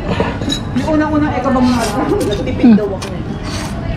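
A man slurps noodles close by.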